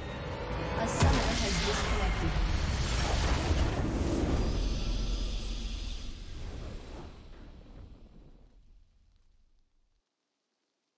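A triumphant game fanfare swells and fades away.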